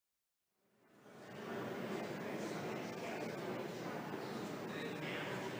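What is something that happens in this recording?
A crowd of men and women murmurs and chatters in a large echoing hall.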